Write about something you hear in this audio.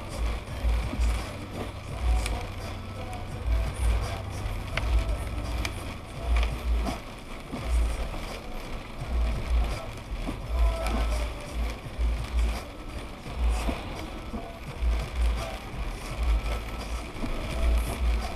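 A windshield wiper sweeps across the glass.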